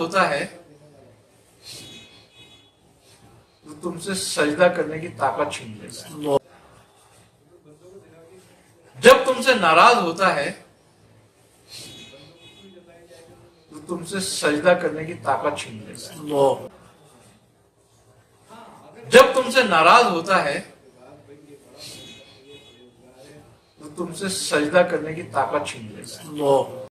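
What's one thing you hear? A middle-aged man speaks calmly and steadily, close to a microphone, with short pauses.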